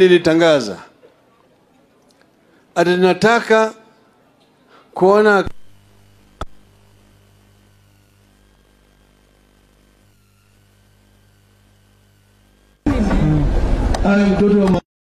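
An elderly man speaks loudly into a microphone in bursts, with pauses between phrases.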